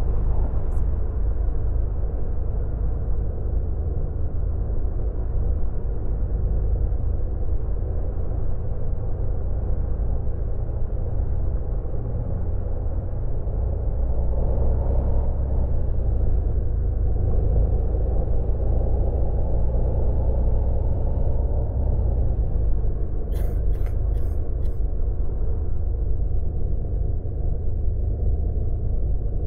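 Tyres roll on a smooth road.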